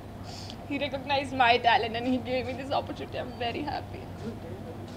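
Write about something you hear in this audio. A young woman speaks emotionally into a nearby microphone.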